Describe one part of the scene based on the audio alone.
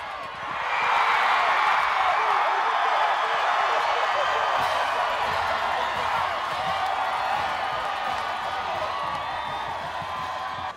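A large crowd cheers loudly outdoors, rising sharply and then slowly fading.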